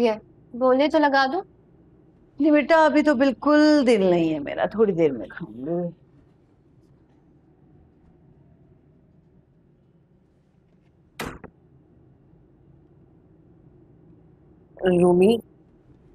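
A middle-aged woman speaks with feeling, close by.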